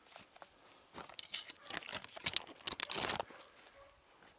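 Dry leaves rustle and crunch underfoot close by.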